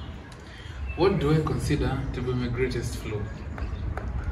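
A young man speaks animatedly close by.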